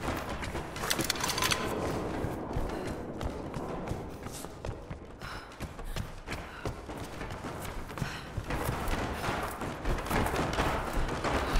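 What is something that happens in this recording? Footsteps run quickly on wooden boards.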